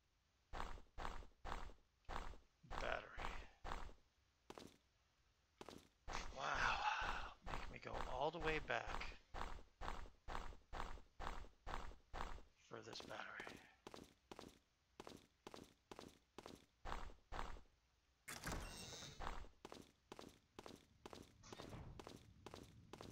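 Footsteps tread at an even walking pace.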